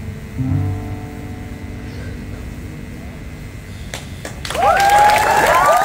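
A keyboard plays notes through loudspeakers.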